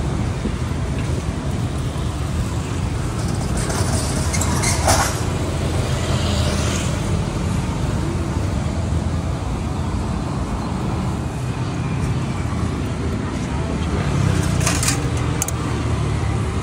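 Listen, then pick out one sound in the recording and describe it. Steady street noise rumbles outdoors.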